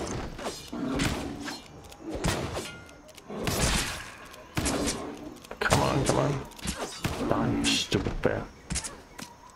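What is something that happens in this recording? Blades clash and strike in quick, loud bursts.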